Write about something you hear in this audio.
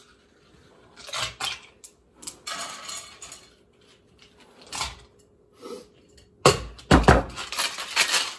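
Glass clinks as drinks are prepared.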